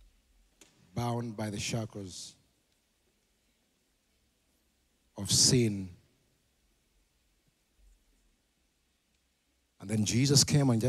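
A man speaks calmly into a microphone over loudspeakers in a large echoing hall, pausing between phrases.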